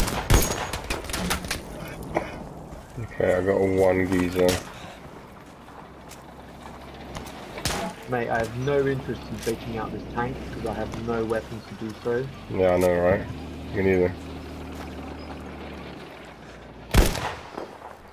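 A rifle fires loud single shots.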